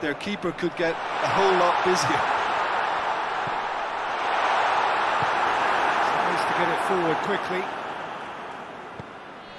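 A large crowd roars and cheers, swelling and then fading.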